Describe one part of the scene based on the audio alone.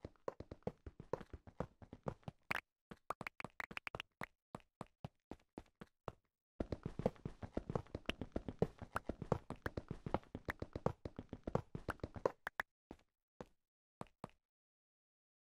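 A pickaxe chips rapidly at stone blocks in a video game.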